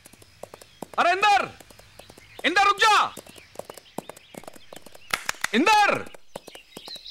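A man shouts out loud calls.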